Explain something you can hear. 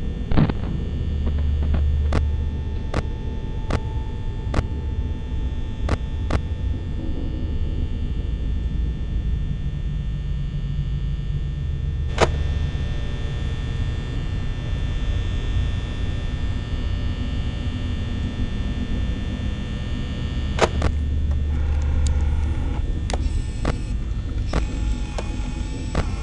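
A low electrical hum drones steadily.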